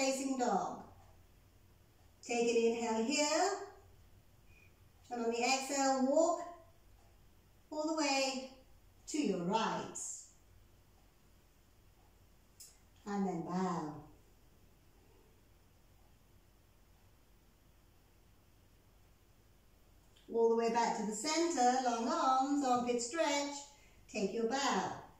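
A woman speaks calmly and slowly in short phrases, close to a microphone.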